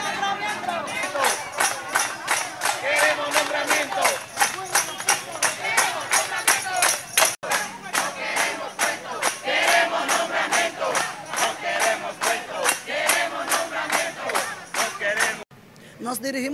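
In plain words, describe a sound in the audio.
A crowd chants loudly in rhythm outdoors.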